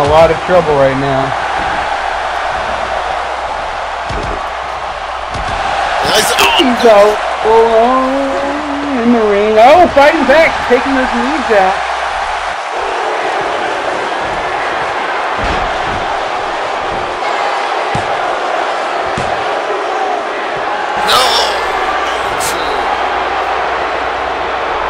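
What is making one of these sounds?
A large crowd murmurs and cheers steadily in a big hall.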